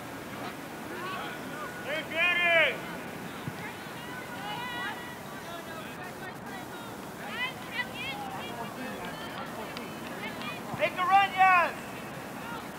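Young women shout to each other across an open field outdoors.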